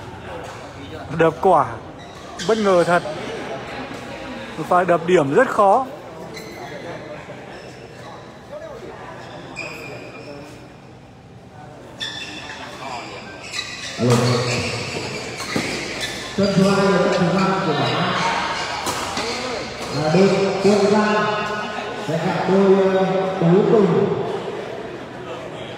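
Young men shout and call out with animation nearby.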